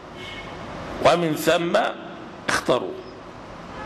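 A man speaks slowly and with feeling into a microphone, close by.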